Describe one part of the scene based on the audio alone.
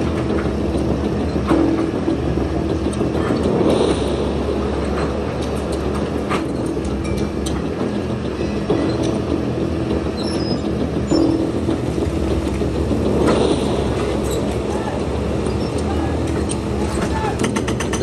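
Concrete and rubble crack and crash down as an excavator tears at a building.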